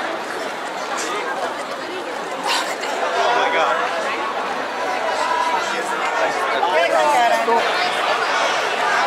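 Young women talk and laugh excitedly close by.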